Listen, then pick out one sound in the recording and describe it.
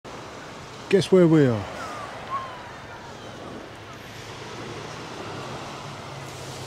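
Small waves wash gently onto a pebble shore outdoors.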